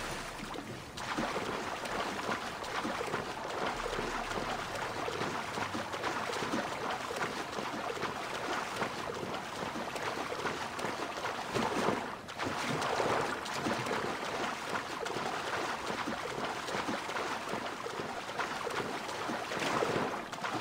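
Water splashes and churns as a swimmer strokes steadily.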